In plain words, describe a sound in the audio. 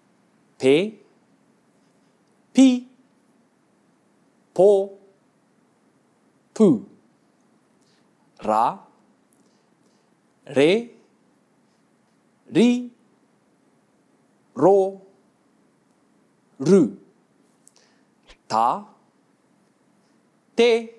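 A young man speaks single syllables clearly into a microphone, pausing about every two seconds.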